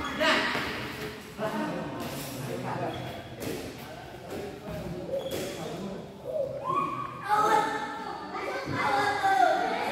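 Men call out and talk nearby in an echoing hall.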